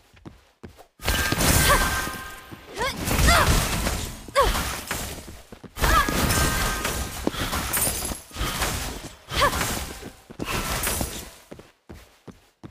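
Spell effects crackle and boom during a fight.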